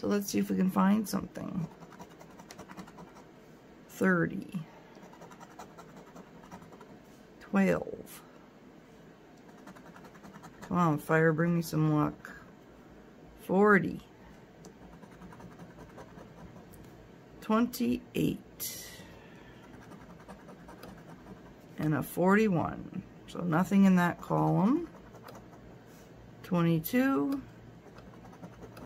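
A coin scrapes across a scratch card.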